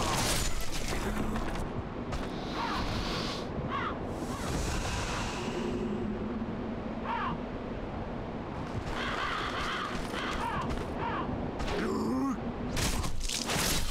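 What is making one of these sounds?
Armoured footsteps run across a stone floor.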